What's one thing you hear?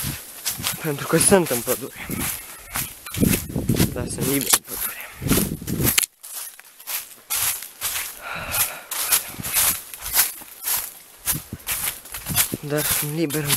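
Footsteps crunch on dry fallen leaves.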